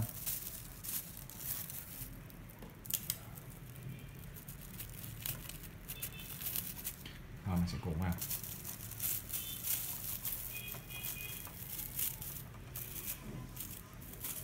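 Plastic ribbon film crinkles and rustles under hands.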